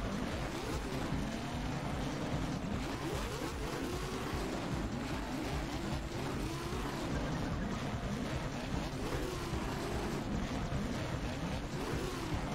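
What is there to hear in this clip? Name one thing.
A futuristic racing craft's engine whines and roars steadily.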